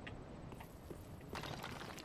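A large blade swings through the air with a whoosh.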